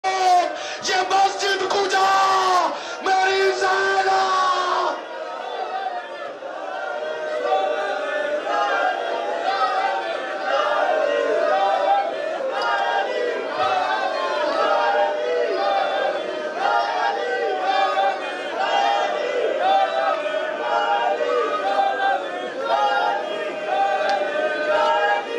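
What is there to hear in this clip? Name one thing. A crowd of men chants loudly in a steady rhythm.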